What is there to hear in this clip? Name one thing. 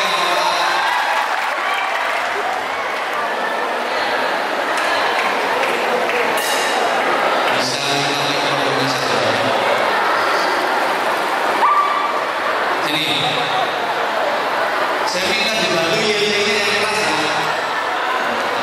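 A man preaches through a microphone and loudspeakers.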